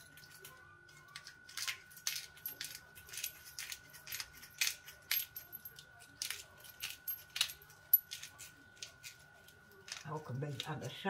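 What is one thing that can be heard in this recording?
A spice grinder clicks and crunches in quick bursts.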